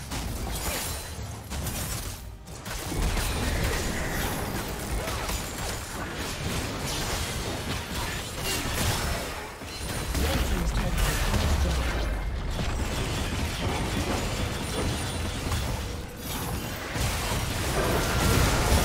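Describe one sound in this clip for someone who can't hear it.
Spells and weapon strikes crackle and boom in a fast, busy fight.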